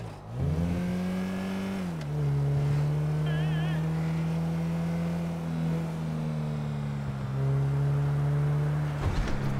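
A car engine drones steadily, shifting gears as the car speeds along.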